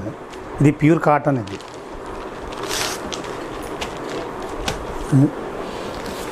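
Silk cloth rustles as it is unfolded and laid down.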